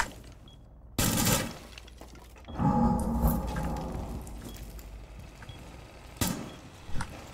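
Gunshots fire in short bursts.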